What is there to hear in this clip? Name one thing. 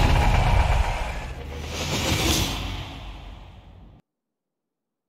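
A car engine roars as tyres screech in a burnout.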